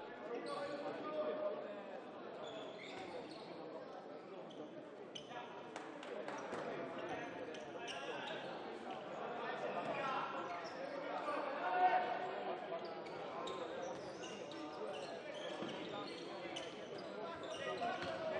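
Players' shoes squeak on the hall floor.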